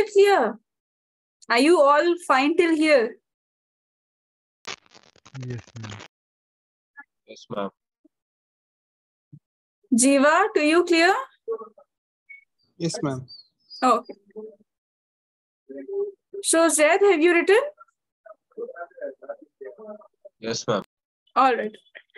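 A young woman explains calmly, heard through an online call.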